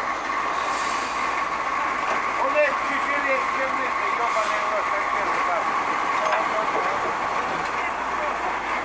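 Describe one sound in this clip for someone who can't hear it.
A diesel truck engine runs.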